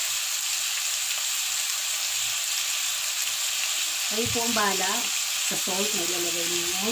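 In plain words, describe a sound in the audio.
Meat sizzles steadily in a hot frying pan.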